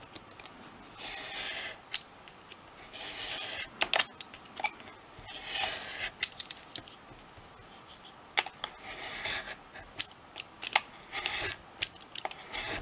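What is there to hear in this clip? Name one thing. A craft knife scores along paper card in short strokes.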